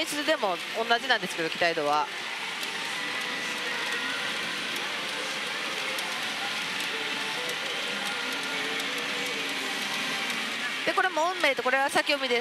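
A gaming machine plays bright electronic music and jingles.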